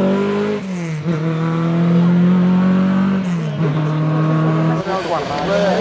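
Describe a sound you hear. A historic rally car accelerates hard along a mountain road, its engine revving.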